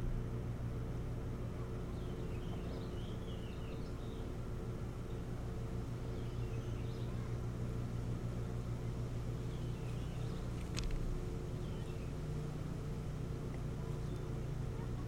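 Wind rumbles steadily across a microphone outdoors.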